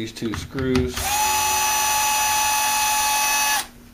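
A screwdriver turns a small screw.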